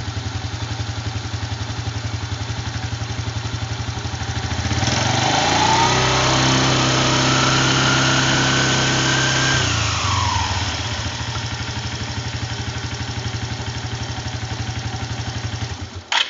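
A small engine idles with a fast, steady putter.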